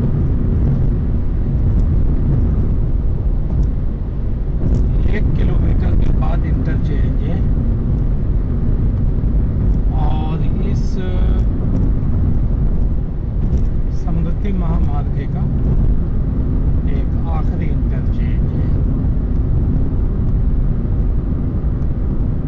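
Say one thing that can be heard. Tyres roar steadily on a smooth road.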